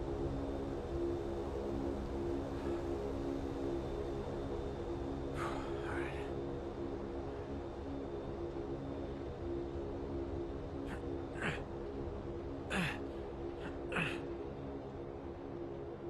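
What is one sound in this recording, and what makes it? Propeller engines drone steadily.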